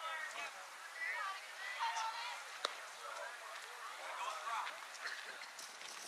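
Young girls call out and chatter from across an open field.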